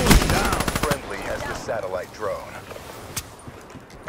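A rifle fires rapid gunshots.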